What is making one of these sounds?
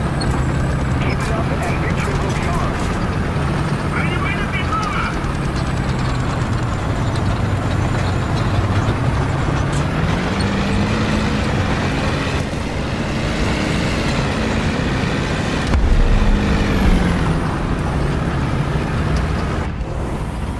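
A tank engine rumbles and whines steadily as the tank drives.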